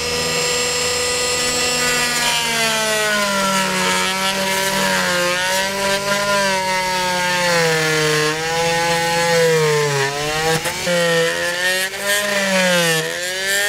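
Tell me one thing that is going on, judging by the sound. An electric drill whirs steadily, then its pitch rises and falls as the trigger is squeezed.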